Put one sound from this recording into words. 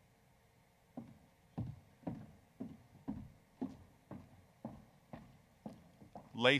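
Footsteps click across a stage floor.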